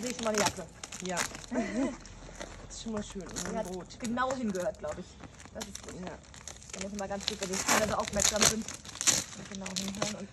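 Packing tape rips and crackles.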